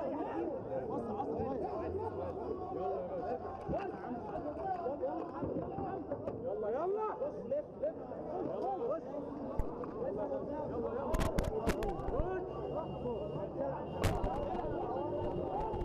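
A crowd of men shouts and talks excitedly close by, outdoors.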